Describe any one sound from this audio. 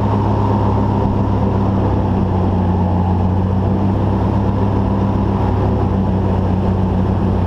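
A small motor hums steadily and loudly close by.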